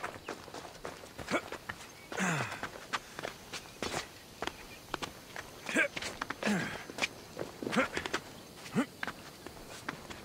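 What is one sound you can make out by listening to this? Hands and feet scrape and knock against rock during a climb.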